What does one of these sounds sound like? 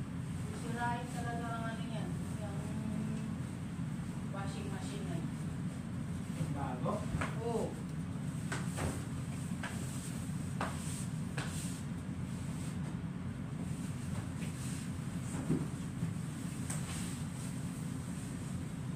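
Bed sheets rustle and flap.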